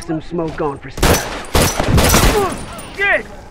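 Gunshots ring out in a quick, loud burst.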